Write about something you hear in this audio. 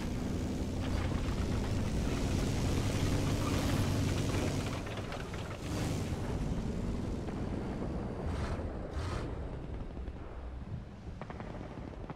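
A tank engine rumbles and clanks as the tank drives over rough ground.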